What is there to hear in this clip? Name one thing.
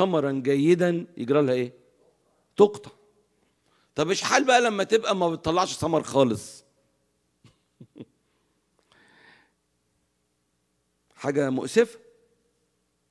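An older man speaks with animation into a microphone, pausing between phrases.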